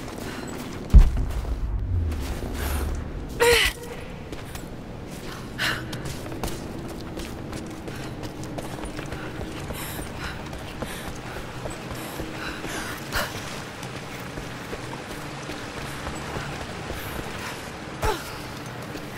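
A body lands with heavy thuds.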